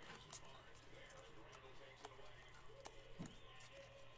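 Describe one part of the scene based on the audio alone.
Trading cards are flicked through by hand.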